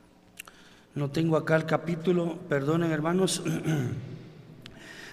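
An elderly man speaks with emphasis into a microphone in a large echoing hall.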